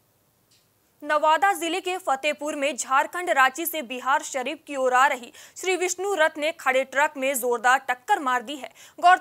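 A young woman reads out the news calmly and clearly into a microphone.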